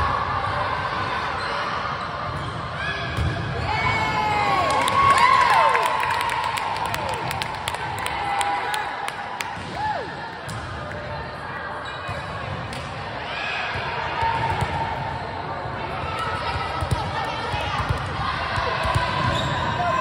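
A volleyball thumps as it is hit and bounces on the floor.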